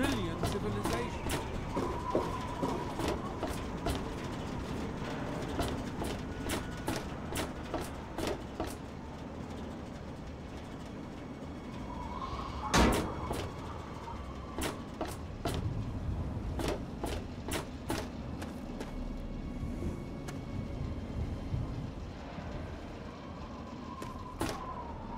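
Footsteps thud and clank on metal and gravel at a steady walking pace.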